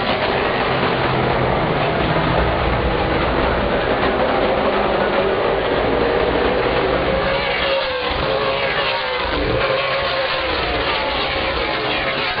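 Race car engines roar loudly as the cars speed around the track.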